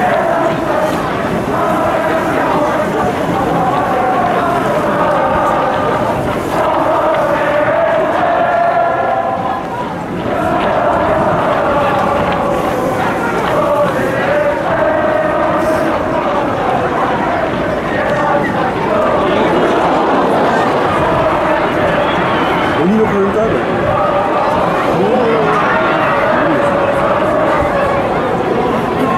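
A large crowd of supporters chants and sings loudly across an open stadium.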